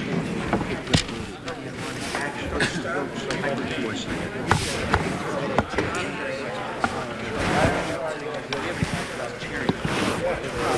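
Objects knock sharply on a wooden desk.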